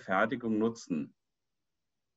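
An adult speaks briefly through an online call.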